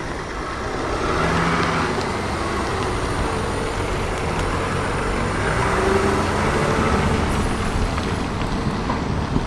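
Tyres roll on wet tarmac.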